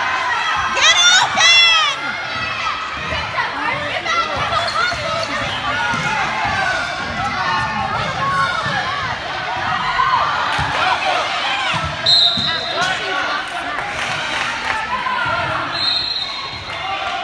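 Spectators talk and cheer in an echoing gym.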